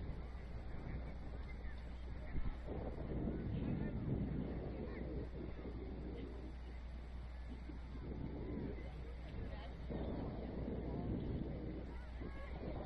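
Players shout to each other faintly across an open field.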